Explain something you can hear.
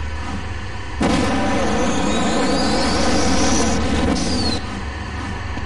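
An electric beam weapon crackles and buzzes.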